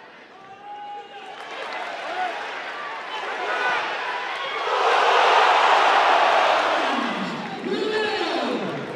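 A large stadium crowd murmurs, then bursts into a loud roar of cheering.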